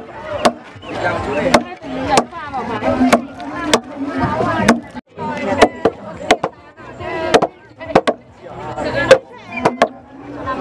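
Wooden mallets pound rice in a wooden trough with heavy, regular thuds.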